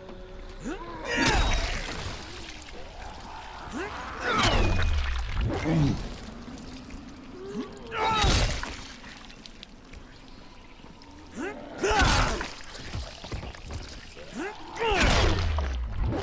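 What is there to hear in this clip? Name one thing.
Heavy blows thud and squelch into flesh.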